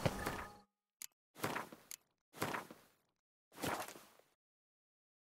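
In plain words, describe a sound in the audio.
Soft menu whooshes sound a few times.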